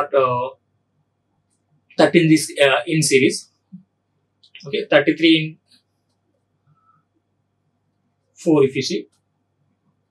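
A man lectures calmly into a close microphone, in short phrases with pauses.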